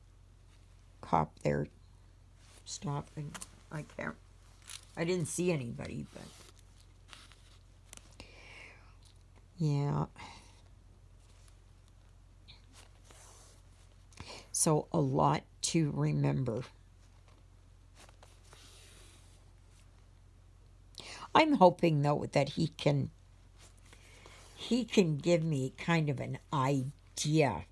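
Yarn rasps softly as it is pulled through stiff canvas.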